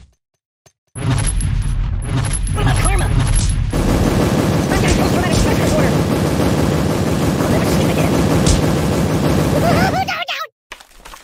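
Grenades explode in rapid, rumbling bursts.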